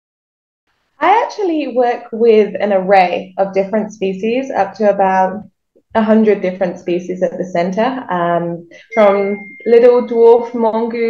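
A young woman talks calmly over an online call.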